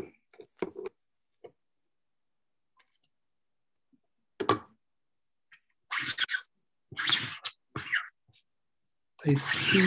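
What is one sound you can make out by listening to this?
Fingers scrape and rub softly across a painted surface.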